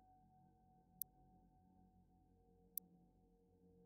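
Menu clicks sound sharply now and then.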